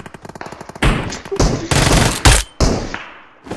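Gunshots fire in quick loud bursts.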